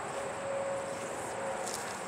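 A rope rustles as it is handled.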